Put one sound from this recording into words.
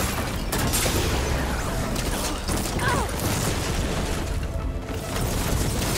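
Rock debris clatters and scatters.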